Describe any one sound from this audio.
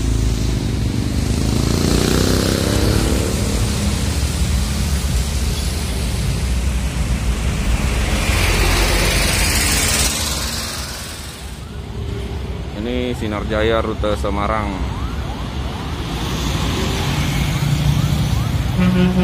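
A large bus engine rumbles and idles close by.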